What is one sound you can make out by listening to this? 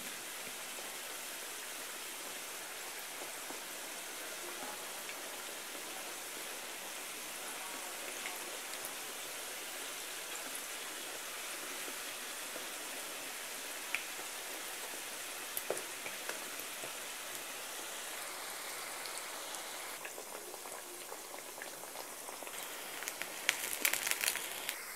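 A metal fork scrapes and taps against a pan.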